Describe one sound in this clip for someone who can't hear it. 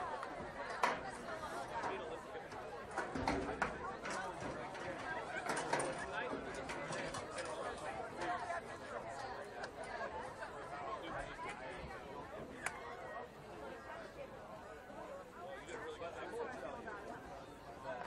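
A crowd of players and onlookers chatter and call out outdoors across an open field.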